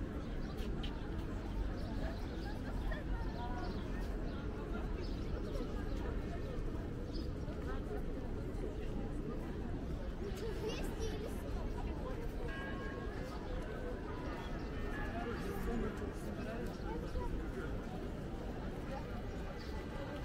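Footsteps patter on paving stones.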